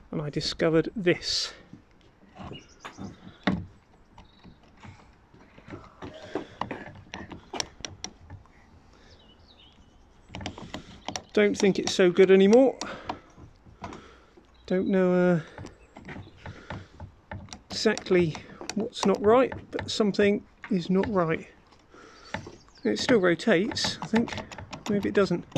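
A rusty metal gear clicks and scrapes as it is turned by hand.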